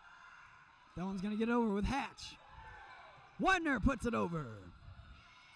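Young women shout loudly on a court in an echoing gym.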